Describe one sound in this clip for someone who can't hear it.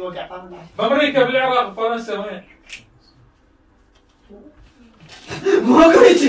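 Young men talk loudly and excitedly, close by.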